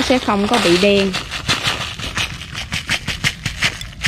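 Dry crumbs patter into a small bowl.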